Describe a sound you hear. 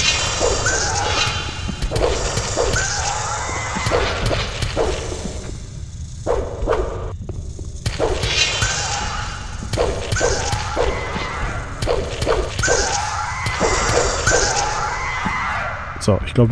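A blade swishes and strikes again and again.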